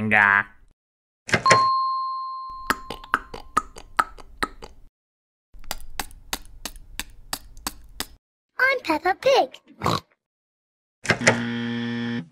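A button clicks.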